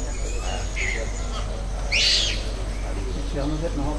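A bird chirps nearby outdoors.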